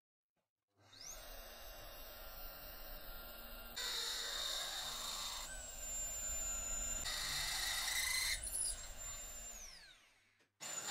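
A magnetic drill whirs as it bores into a steel tube.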